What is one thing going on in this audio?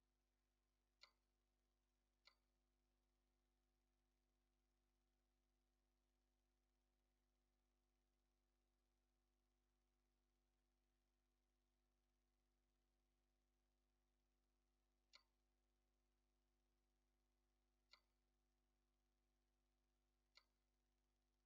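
Short, soft clicks sound now and then as menu items are selected.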